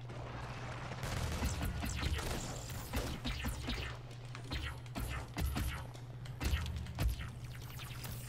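Loud energy blasts and explosions burst repeatedly.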